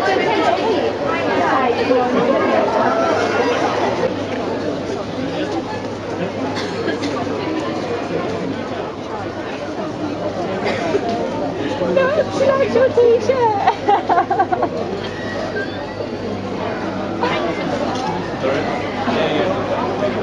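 A crowd of people chatters throughout.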